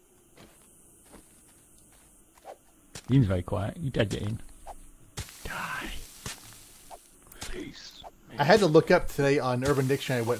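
A shovel strikes into dirt with dull thuds.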